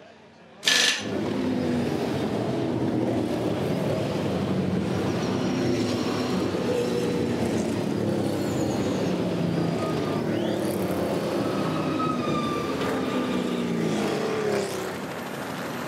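Racing car engines roar and change pitch as the cars pass close by.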